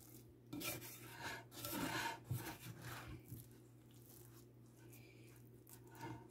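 A spatula scrapes against a glass bowl.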